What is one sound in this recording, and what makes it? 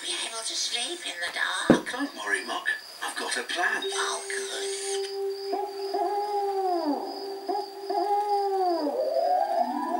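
A television plays a cartoon soundtrack through its small speaker.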